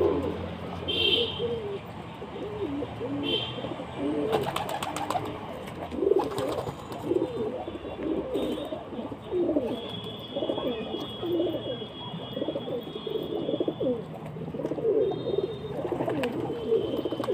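Pigeons coo steadily and close by.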